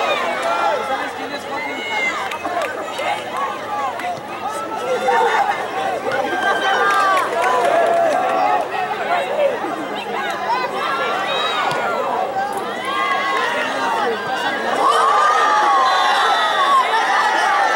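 Young men call out to each other across a playing field.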